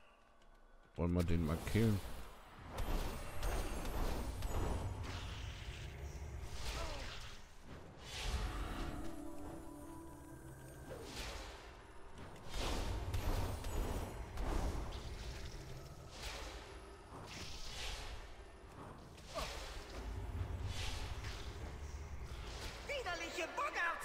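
Video game spells whoosh and crackle in quick bursts.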